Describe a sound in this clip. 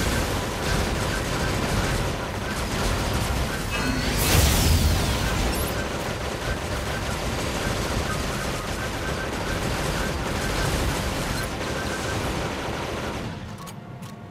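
Gunfire and blasts from a fight ring out in quick bursts.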